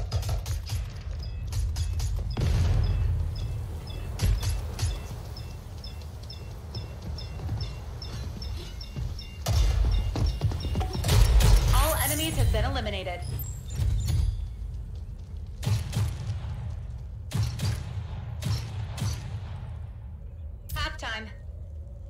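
Automatic rifle fire cracks in short bursts.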